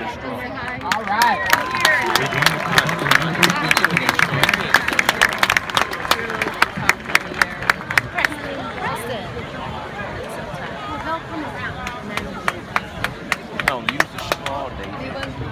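Cheerleaders clap their hands in sharp rhythmic bursts.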